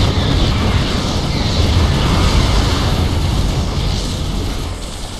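Explosions rumble and boom in quick succession.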